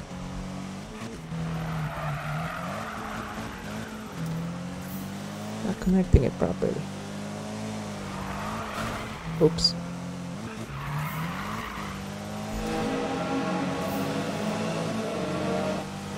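A car engine roars and revs steadily, rising and falling in pitch.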